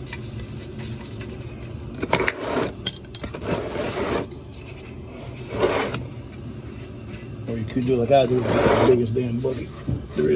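A plastic tub scrapes across a concrete floor.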